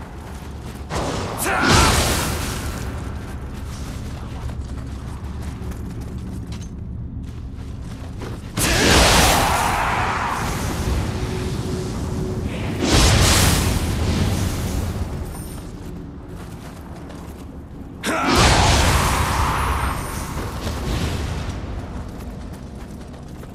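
Swords swing and clash with sharp whooshes.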